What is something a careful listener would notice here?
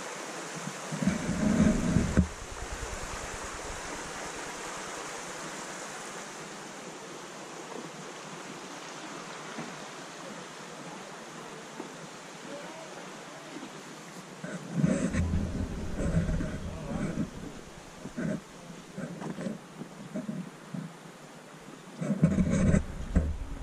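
Wind blows in gusts outdoors, rumbling against the microphone.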